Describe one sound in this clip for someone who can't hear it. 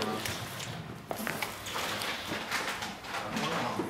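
Stiff paper sheets rustle and slide as they are handled.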